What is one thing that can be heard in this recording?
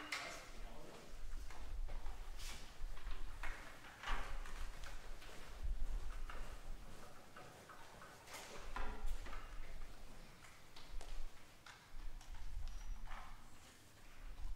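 Music stands knock and clatter as they are moved.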